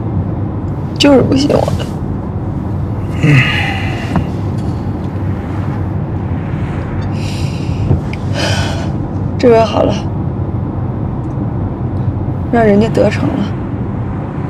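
A young woman speaks in a hurt, pleading voice close by.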